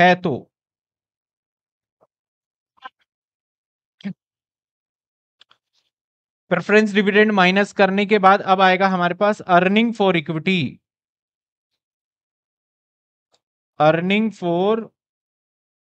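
A man speaks calmly into a clip-on microphone, explaining.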